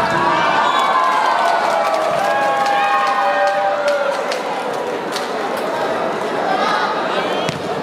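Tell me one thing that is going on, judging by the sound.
Young women players shout and cheer to each other.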